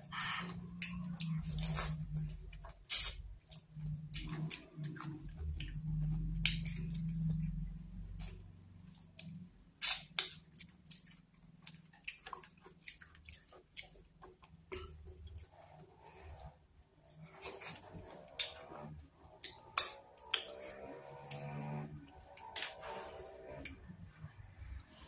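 A young woman chews food loudly and wetly.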